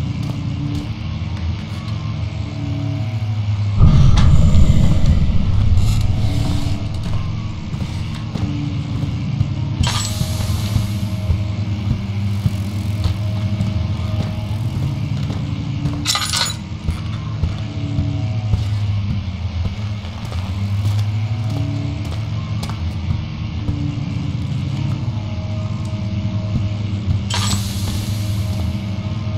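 Footsteps tap slowly on a hard tiled floor.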